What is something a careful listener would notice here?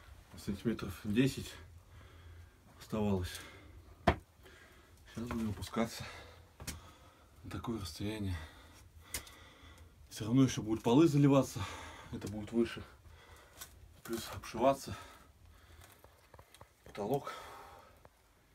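A young man talks calmly close by, with pauses.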